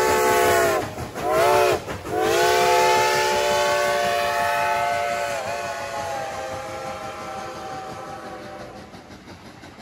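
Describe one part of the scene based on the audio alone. A steam locomotive's whistle blows loudly in long blasts, then fades.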